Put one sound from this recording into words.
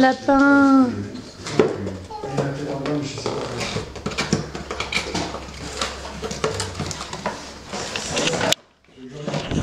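Cardboard and paper rustle and crinkle as a box is unpacked.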